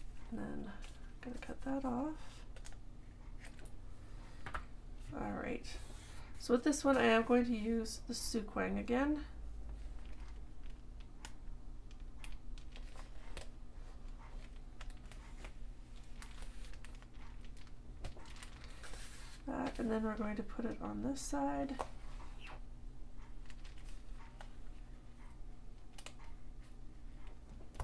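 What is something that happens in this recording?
Paper rustles and crinkles as hands fold and press it.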